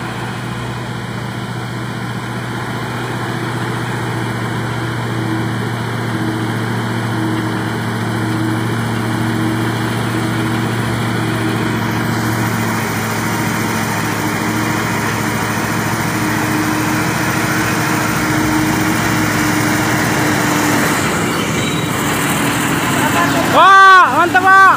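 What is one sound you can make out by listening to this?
A heavy truck engine rumbles steadily and grows louder as it approaches slowly.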